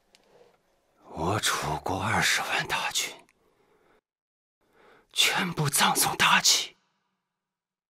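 A man speaks in a deep, forceful voice, close by.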